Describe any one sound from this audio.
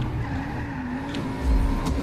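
Car tyres screech in a skid.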